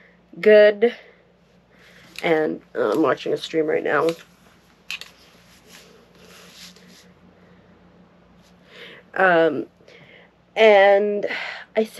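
A young woman talks expressively into a nearby microphone, in short bursts.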